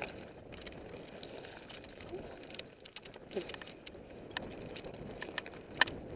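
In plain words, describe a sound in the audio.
Bicycle tyres roll and crunch over loose stones.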